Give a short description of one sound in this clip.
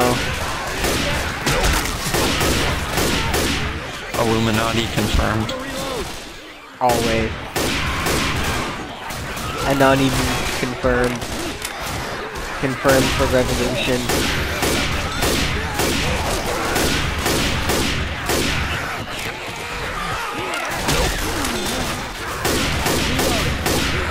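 Rapid gunshots crack again and again.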